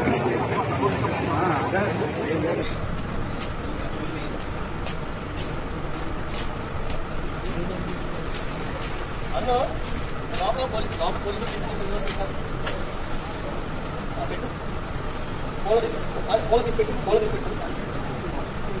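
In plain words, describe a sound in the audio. A crowd of men murmur and talk outdoors.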